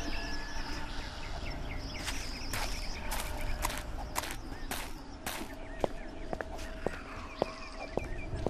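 Footsteps tread on rough ground.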